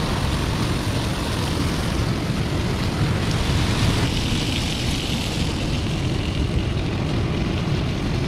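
Wind blows strongly outdoors.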